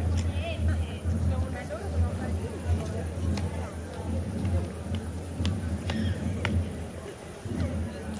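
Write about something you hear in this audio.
Footsteps shuffle on pavement.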